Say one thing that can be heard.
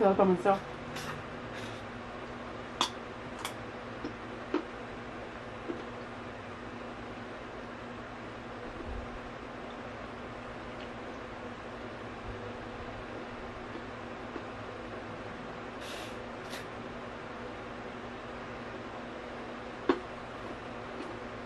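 A young woman chews food close to a microphone, with wet smacking and crunching sounds.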